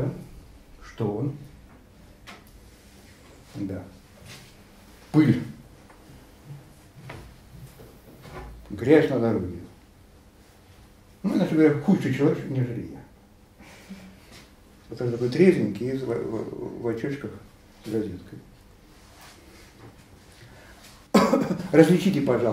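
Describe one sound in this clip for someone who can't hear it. An elderly man speaks calmly in short bursts with pauses.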